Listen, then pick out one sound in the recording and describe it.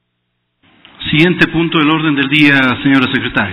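A man speaks calmly through a microphone.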